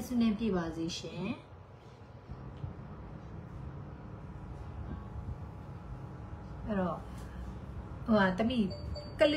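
A young woman talks calmly and close up, with pauses.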